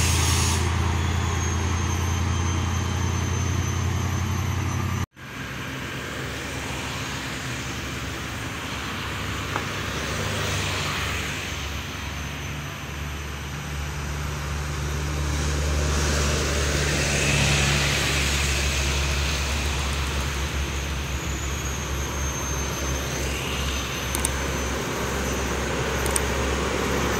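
Cars and trucks pass by with a steady roar of traffic.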